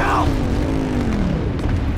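A quad bike engine revs close by.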